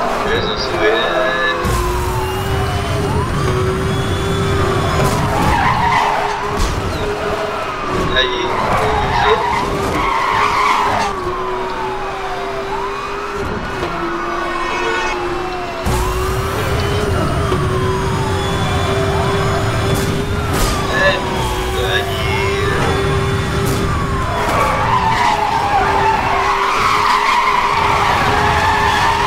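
A powerful car engine roars and revs at high speed.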